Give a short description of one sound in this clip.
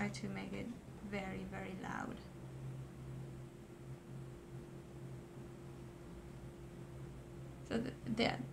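A woman talks calmly close to a microphone.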